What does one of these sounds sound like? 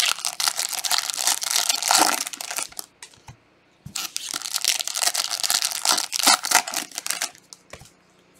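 A foil wrapper crinkles and tears loudly up close.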